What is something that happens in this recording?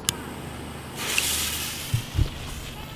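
A firework fuse fizzes and hisses.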